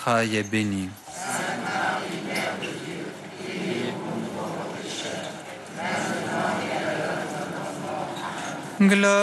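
A crowd sings together outdoors.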